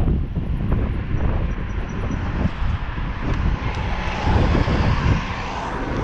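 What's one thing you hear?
A city bus engine hums as the bus passes close by.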